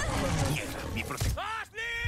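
A pistol fires.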